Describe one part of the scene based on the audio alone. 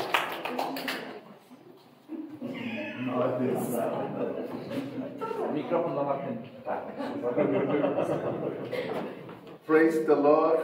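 A middle-aged man talks with animation into a microphone in a room with some echo.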